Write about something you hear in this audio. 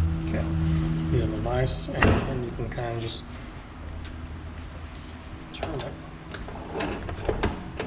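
Metal tools clink and knock against a heavy metal part.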